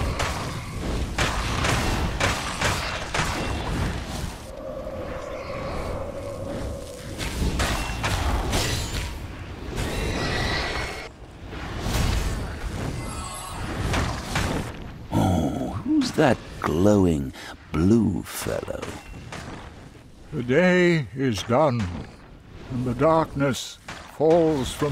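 Magic blasts whoosh and crackle in a fight.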